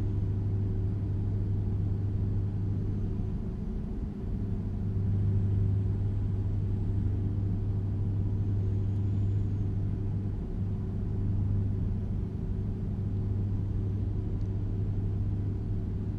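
A truck's diesel engine drones steadily at cruising speed.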